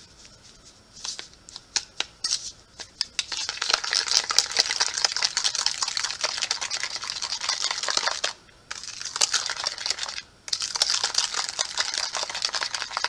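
A spoon whisks cream briskly in a plastic bowl.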